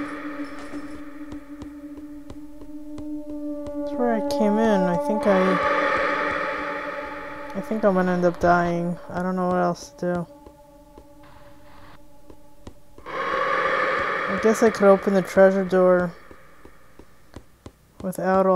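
Sword blows swish and clang in a game.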